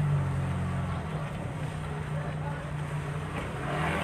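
A motorbike engine putters past nearby.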